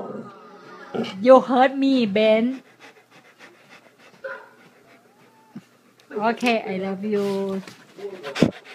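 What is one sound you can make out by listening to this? A dog howls and yowls close by in drawn-out, wavering cries.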